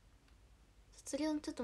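A young woman speaks with animation close to a phone microphone.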